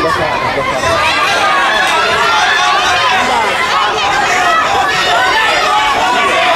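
A crowd of spectators chatters and shouts loudly in a large echoing hall.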